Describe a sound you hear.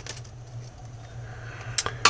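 Paper cards rustle softly as they are shuffled.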